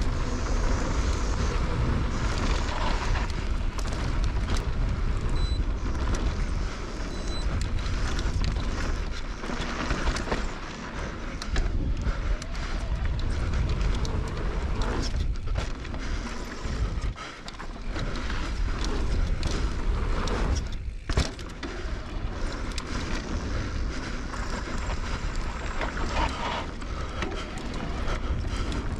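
Bike tyres roll and crunch fast over a dry dirt trail.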